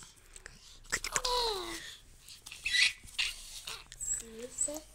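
A baby girl laughs happily close by.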